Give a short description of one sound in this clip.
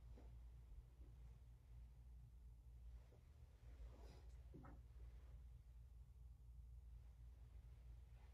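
Paper pages rustle softly as they are turned.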